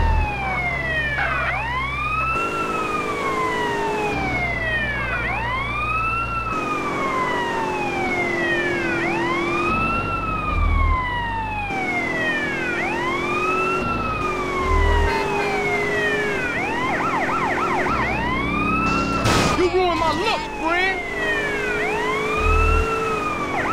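A car engine roars at speed.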